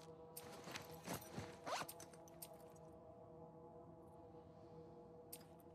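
Soft menu clicks and chimes sound in quick succession.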